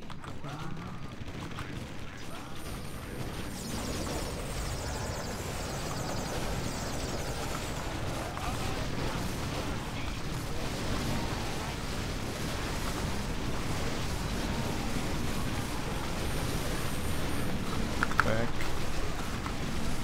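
A young man talks with animation close to a microphone.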